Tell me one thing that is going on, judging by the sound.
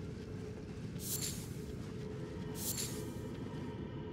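A bright chime rings as an item is picked up.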